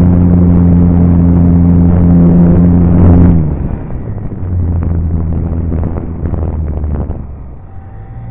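A small model airplane motor drones loudly, then drops away.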